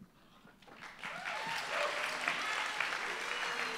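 Acoustic guitars strum.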